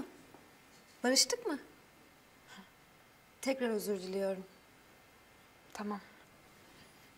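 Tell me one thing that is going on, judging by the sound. A young woman speaks calmly in short replies.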